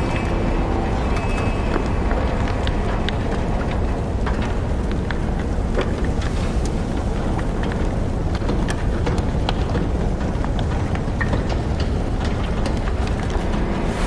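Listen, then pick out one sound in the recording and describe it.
Water splashes steadily as a man swims.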